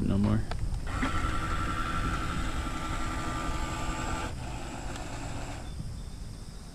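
A small boat motor whirs steadily on the water.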